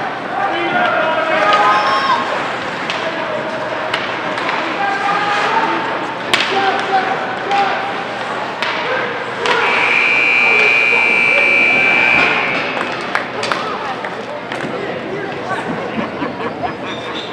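A crowd of spectators shouts and cheers in an echoing ice rink.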